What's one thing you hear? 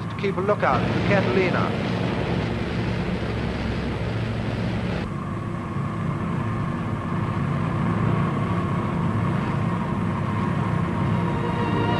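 Aircraft engines drone steadily and loudly.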